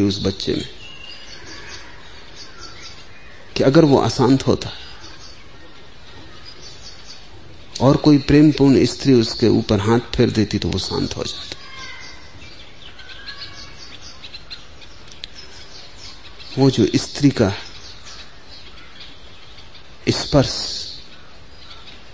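An elderly man speaks slowly and calmly, with long pauses.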